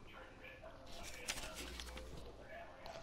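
A paper page turns with a soft rustle.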